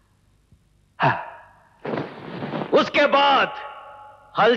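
A man cries out hoarsely in agony.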